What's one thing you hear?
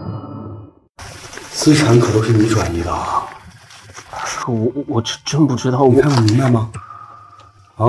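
A young man speaks forcefully and accusingly, close by.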